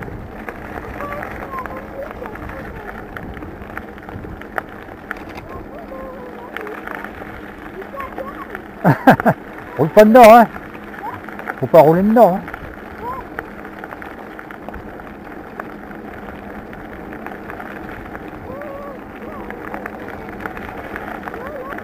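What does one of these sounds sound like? Bicycle tyres crunch steadily over a gravel path.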